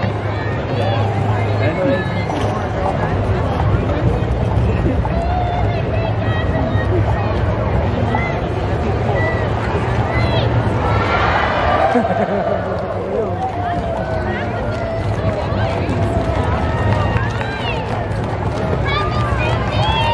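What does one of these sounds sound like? A large crowd chatters and calls out along an outdoor street.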